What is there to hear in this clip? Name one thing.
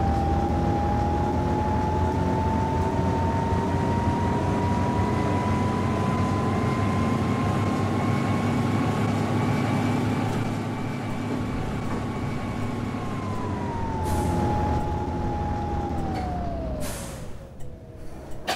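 A bus engine hums with a steady whine that rises slightly, then winds down as the bus slows.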